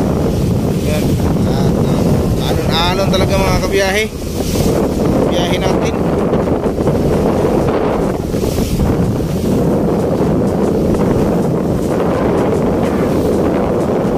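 Water splashes and hisses against a moving boat's hull and outrigger.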